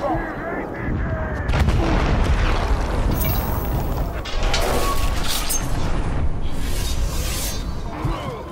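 Blades clash and strike in a close fight.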